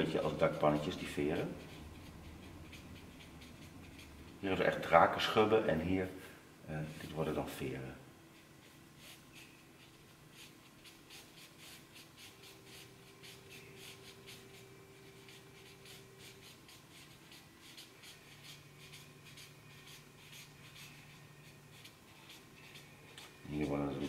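A marker scratches across paper.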